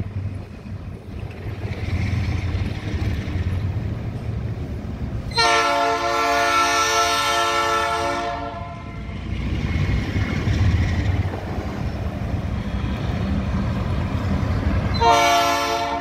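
A diesel locomotive engine rumbles as a train approaches.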